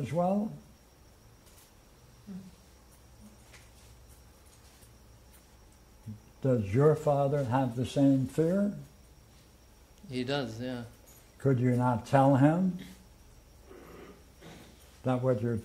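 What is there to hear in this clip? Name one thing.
An elderly man speaks calmly and explains, with pauses.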